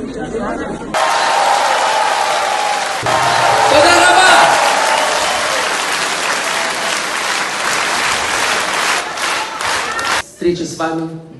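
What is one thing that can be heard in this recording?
A large crowd cheers and applauds in a big hall.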